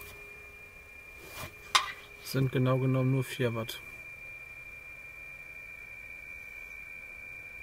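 A radio receiver hums with a faint, steady high tone through a small laptop speaker.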